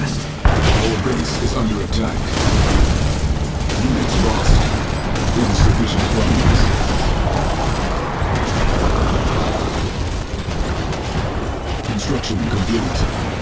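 Explosions boom and crackle in a battle.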